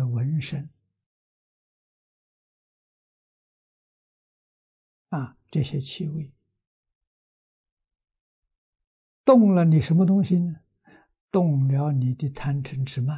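An elderly man speaks calmly with long pauses, close through a clip-on microphone.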